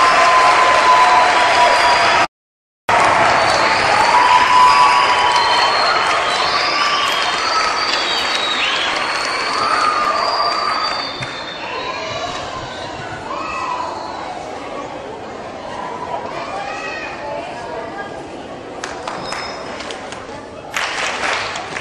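A large children's choir sings in a big echoing hall.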